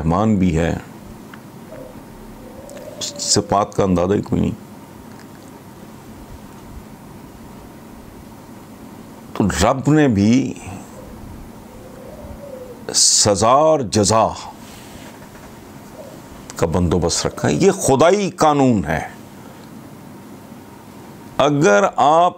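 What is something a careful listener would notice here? An elderly man speaks emphatically into a close microphone, in short bursts with pauses.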